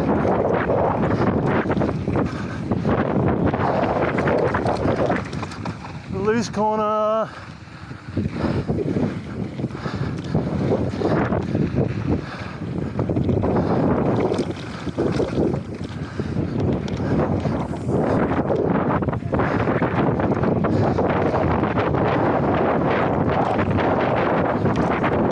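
Wind rushes past loudly, outdoors at speed.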